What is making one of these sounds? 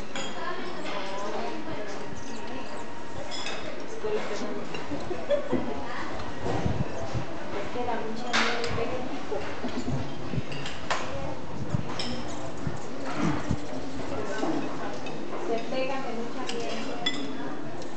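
Hummingbird wings hum close by as the birds hover and dart.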